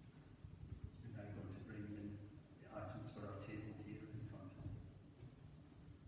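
A man reads aloud calmly in a large echoing hall.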